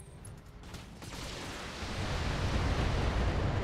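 Heavy gunfire roars in a loud burst.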